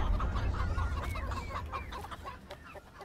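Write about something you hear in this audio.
Chicks cheep softly.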